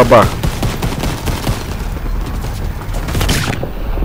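A machine gun fires in short bursts.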